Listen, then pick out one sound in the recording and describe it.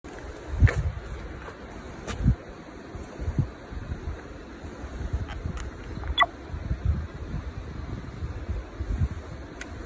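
Buttons on a camcorder click.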